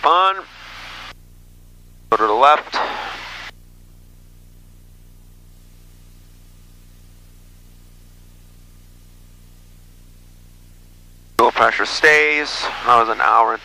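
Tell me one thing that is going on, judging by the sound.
A man speaks in short bursts over a crackly radio headset.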